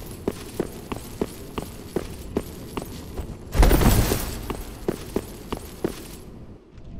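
Armored footsteps clank steadily on stone.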